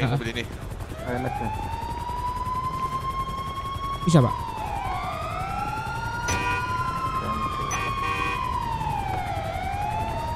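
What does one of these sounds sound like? A siren wails nearby, rising and falling.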